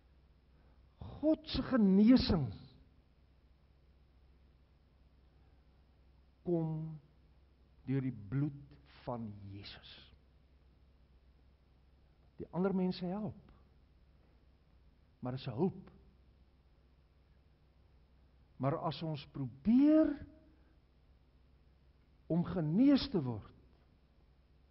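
An elderly man preaches with animation through a microphone in short bursts with pauses, in a large echoing hall.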